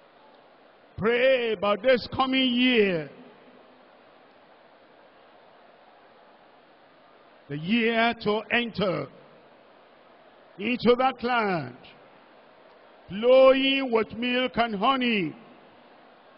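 A man speaks in short, forceful phrases over a loudspeaker in a large hall.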